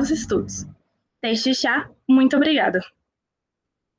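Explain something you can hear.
A young woman speaks calmly into a microphone over an online call.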